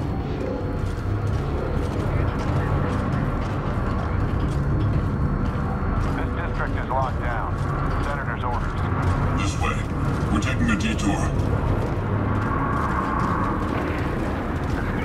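Footsteps tread on a metal stairway and floor.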